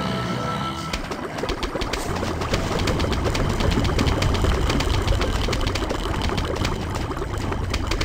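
Rapid popping shots fire over and over in a game.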